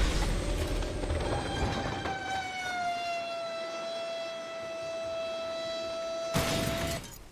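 A tandem-rotor helicopter's turbines whine overhead.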